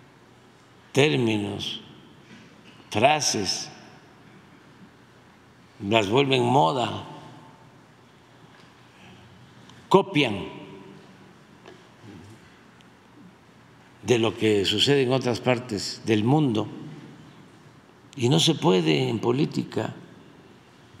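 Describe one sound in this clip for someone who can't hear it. An elderly man speaks calmly into a microphone in short bursts with pauses.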